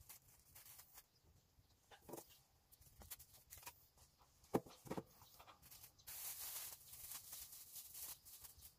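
Thin plastic masking film crinkles and rustles against a window.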